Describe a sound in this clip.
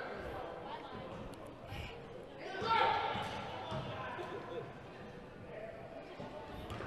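A crowd of spectators calls out and cheers in an echoing gym.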